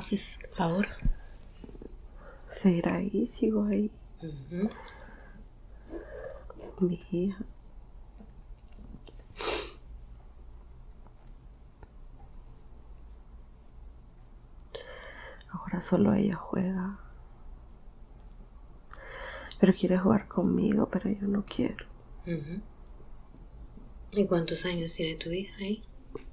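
A woman speaks slowly and drowsily, close by.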